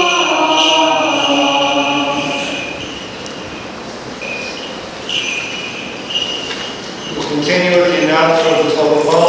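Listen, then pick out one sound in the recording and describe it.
A man chants through a microphone in a large echoing hall.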